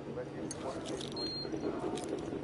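A keycard reader beeps.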